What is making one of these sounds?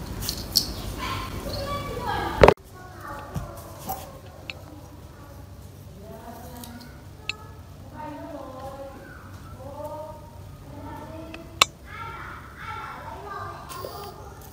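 Plastic wire connectors click and rattle as they are handled.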